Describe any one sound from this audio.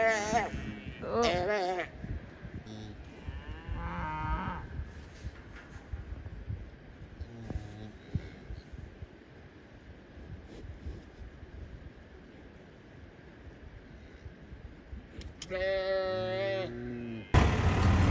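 A cow moos loudly, again and again.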